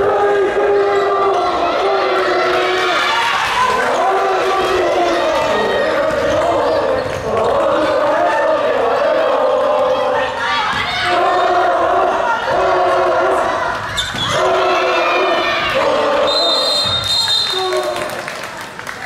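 A crowd of young spectators chants and cheers loudly in unison.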